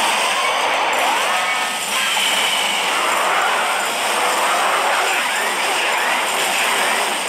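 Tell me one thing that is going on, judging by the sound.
Video game battle sounds clash, crackle and boom without pause.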